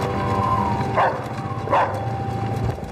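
A dog barks sharply.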